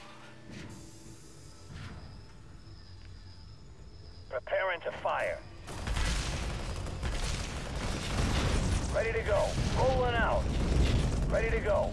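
A heavy armored vehicle's engine rumbles low.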